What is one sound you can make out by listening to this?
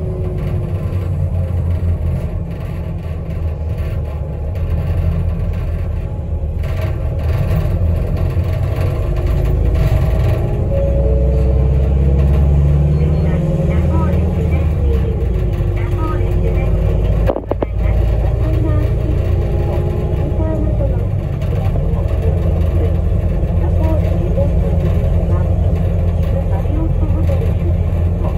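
A vehicle's engine and tyres rumble steadily from inside the cabin.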